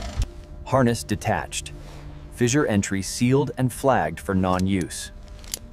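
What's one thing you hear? Metal carabiners clink and click as they are clipped onto a rope.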